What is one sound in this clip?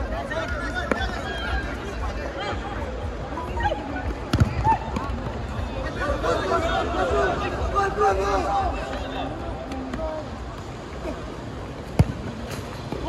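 A ball is kicked with a sharp thump.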